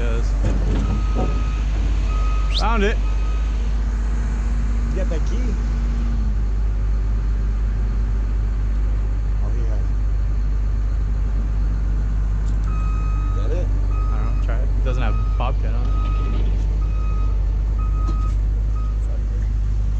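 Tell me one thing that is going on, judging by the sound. A reversing alarm beeps in a steady rhythm.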